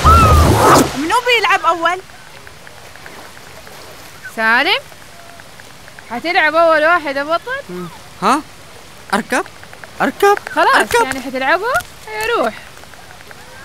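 Young boys talk with animation, close by.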